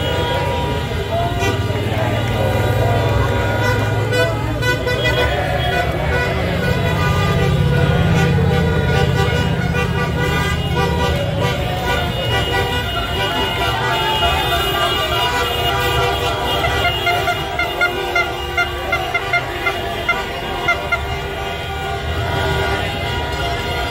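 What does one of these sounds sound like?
A large outdoor crowd cheers and chants loudly.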